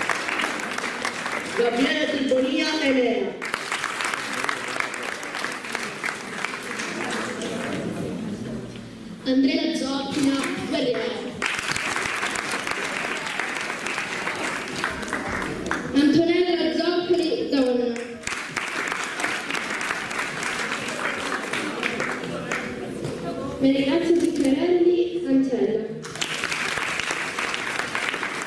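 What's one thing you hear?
An audience claps and cheers loudly in a hall.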